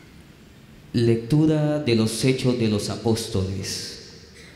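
A young man reads out into a microphone, heard through loudspeakers in a large echoing hall.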